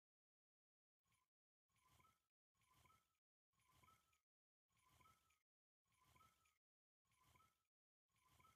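A fishing reel clicks and whirs in short bursts of winding.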